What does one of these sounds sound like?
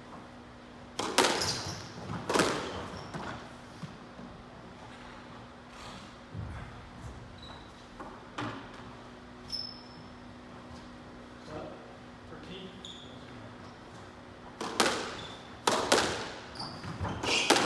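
A squash ball smacks hard against the walls, echoing in a large hard-walled room.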